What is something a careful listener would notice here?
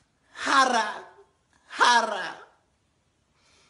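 A young man wails in an exaggerated, sobbing voice close by.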